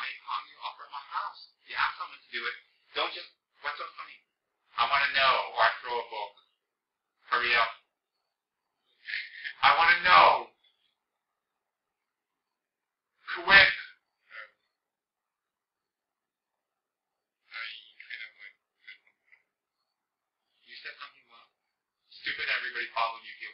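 A man speaks calmly and slowly in short phrases, with pauses between them.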